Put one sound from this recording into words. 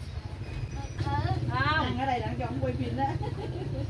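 Women chat with animation nearby.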